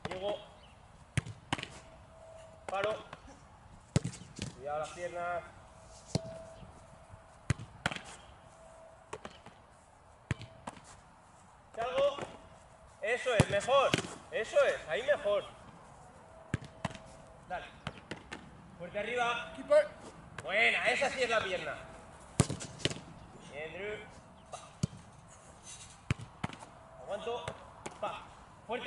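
A football is kicked with a sharp thud outdoors.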